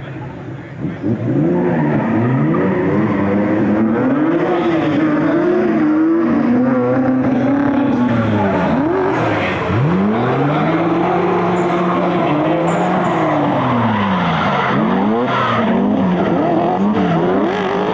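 Two car engines rev and roar loudly, rising and falling in pitch.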